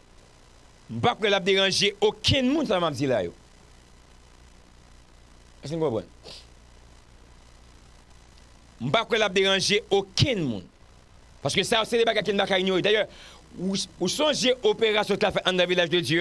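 A young man speaks with animation, close to a microphone, in bursts with pauses.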